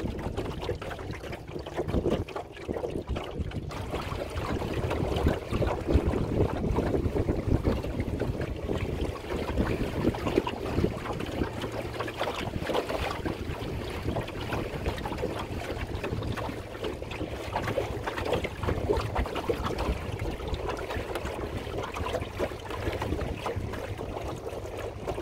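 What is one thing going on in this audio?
Water laps and splashes against a small wooden dinghy's hull.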